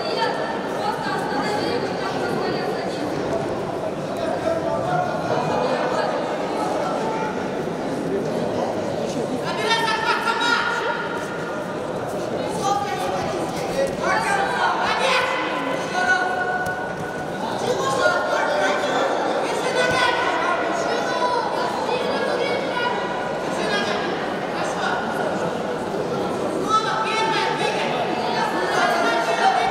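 A large crowd cheers and shouts in an echoing arena.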